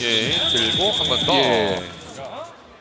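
A crowd in a large hall cheers and shouts loudly.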